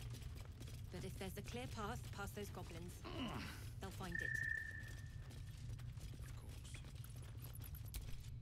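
Footsteps crunch on dirt and stone.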